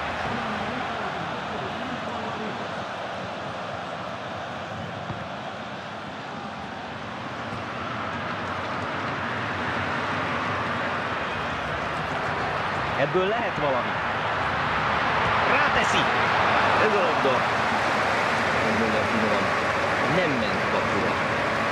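A stadium crowd roars steadily and swells louder as an attack nears the goal.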